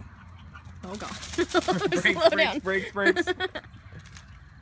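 A dog barks excitedly close by.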